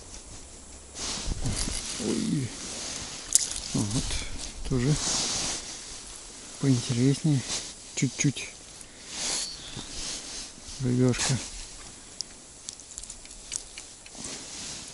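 A jacket rustles as hands move about.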